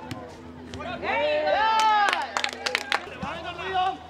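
Spectators cheer and shout from nearby.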